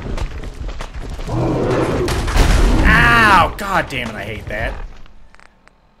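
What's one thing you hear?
A large creature roars.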